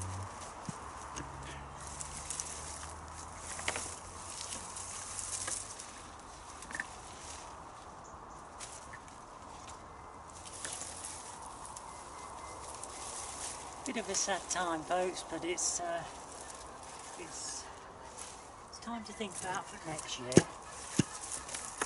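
Leaves rustle as plants are pulled and handled.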